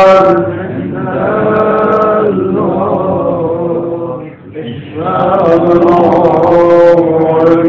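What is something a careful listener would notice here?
A man speaks in a drawn-out, sing-song voice.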